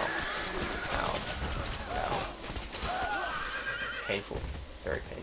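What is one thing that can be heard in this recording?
Horses whinny and snort.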